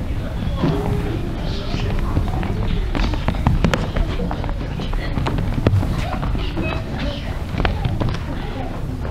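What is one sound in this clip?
Feet stamp and tap on a wooden stage.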